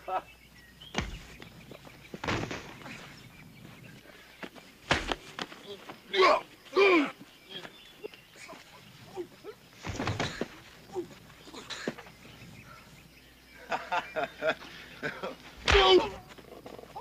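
Punches land with sharp, heavy thuds.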